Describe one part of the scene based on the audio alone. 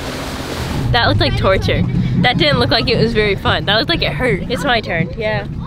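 A young woman speaks cheerfully up close.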